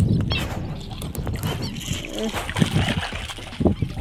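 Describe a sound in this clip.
Water splashes against a small boat.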